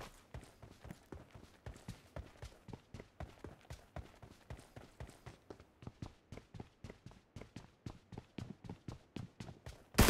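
Footsteps run quickly and steadily over hard ground.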